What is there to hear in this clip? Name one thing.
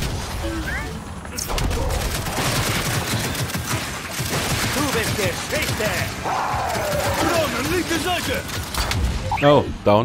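A flying robot drone whirs overhead.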